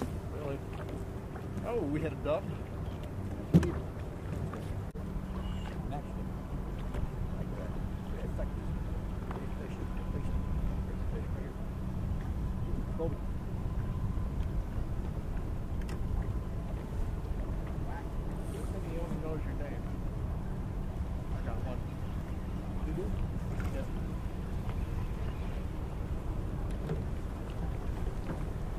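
Wind rumbles across the open water.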